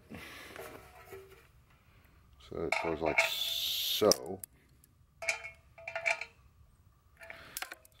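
A hollow plastic tank knocks and scrapes as it is handled.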